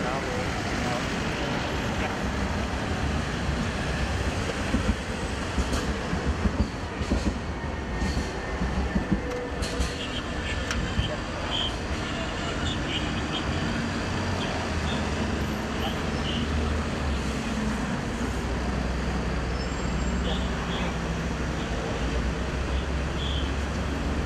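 Traffic rumbles steadily along a busy road outdoors.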